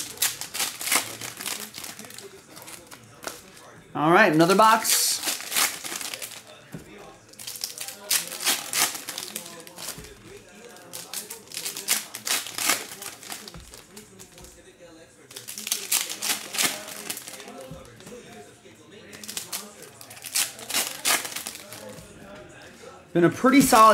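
Foil card wrappers crinkle and tear in bursts close by.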